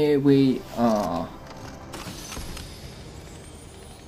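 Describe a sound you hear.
A treasure chest creaks open.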